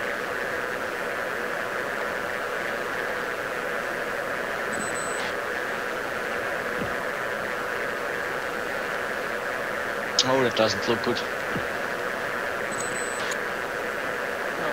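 A jet engine roars steadily inside a cockpit.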